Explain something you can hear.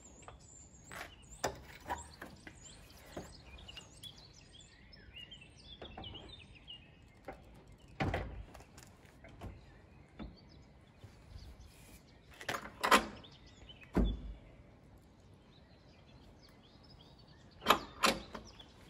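A metal tailgate clanks and knocks as it is lifted and fitted.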